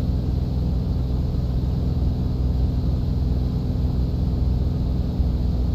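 A small propeller plane's engine drones steadily and loudly.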